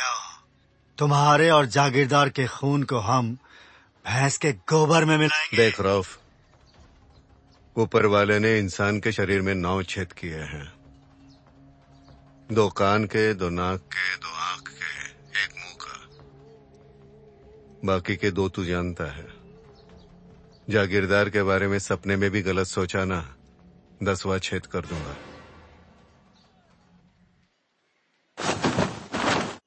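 A man speaks tensely on a phone, close by.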